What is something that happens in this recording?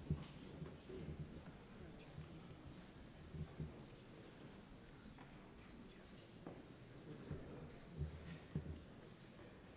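A crowd murmurs and shifts in a large echoing hall.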